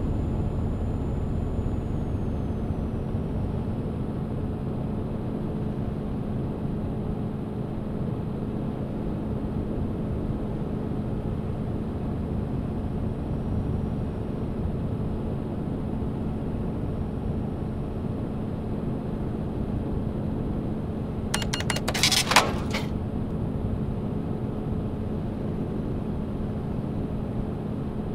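A truck engine hums steadily with a low drone.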